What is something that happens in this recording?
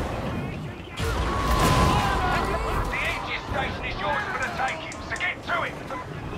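A flamethrower roars with a loud rushing burst.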